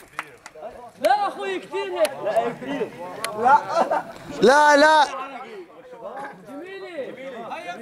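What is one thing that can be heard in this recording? Several young men shout and chant loudly outdoors.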